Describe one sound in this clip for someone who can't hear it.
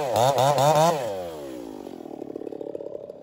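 A chainsaw engine winds down and idles out.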